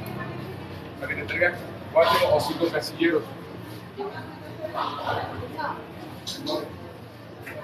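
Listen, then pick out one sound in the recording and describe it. Two men talk with each other nearby.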